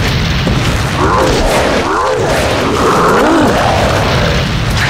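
Creatures snarl and shriek.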